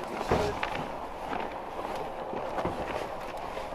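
Boots scrape and thump as a man climbs into a pickup truck's bed.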